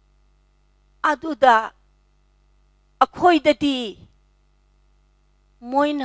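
An elderly woman speaks expressively into a headset microphone, in short phrases with pauses.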